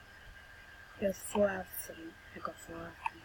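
A boy speaks briefly and calmly into a webcam microphone.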